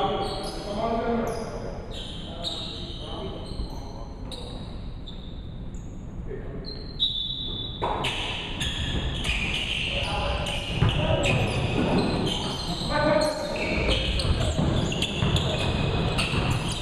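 Sneakers squeak on a hardwood floor in an echoing gym.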